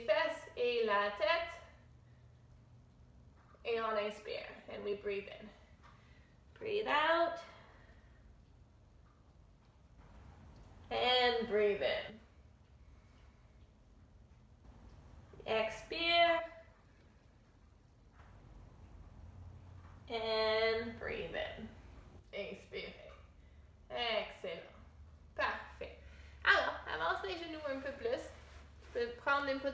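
A woman speaks calmly and clearly, close by, in short phrases with pauses.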